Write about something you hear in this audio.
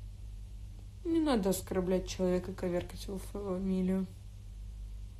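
A young woman speaks briefly and calmly, close to a phone microphone.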